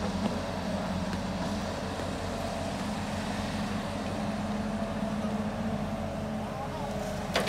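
An excavator's hydraulics whine as the arm swings.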